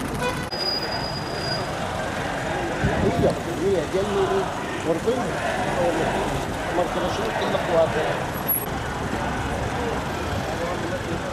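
A large crowd murmurs and chants outdoors.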